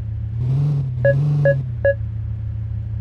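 A parking sensor beeps a few times in quick succession.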